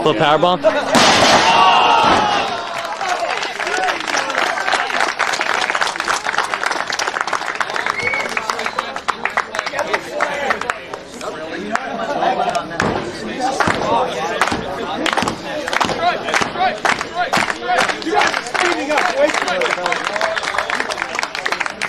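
A crowd outdoors cheers and shouts.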